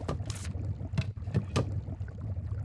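Soft menu clicks sound as a game menu opens.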